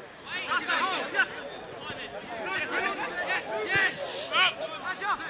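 Football players shout to each other across an outdoor field.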